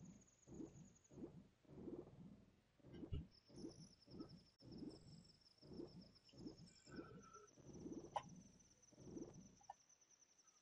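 A young man talks calmly into a headset microphone.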